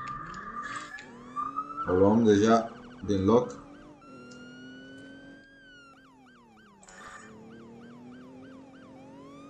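A police siren wails, rising and falling.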